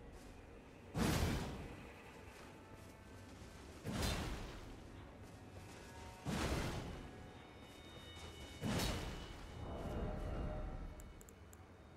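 A heavy curved blade swooshes and slams into the ground.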